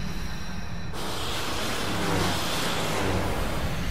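Magic blasts burst with loud roaring whooshes.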